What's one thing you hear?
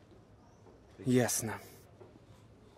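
A young man speaks softly up close.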